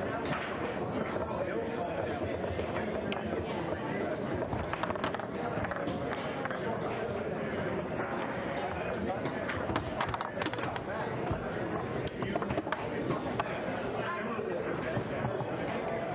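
Plastic foosball figures strike a hard ball with sharp clacks.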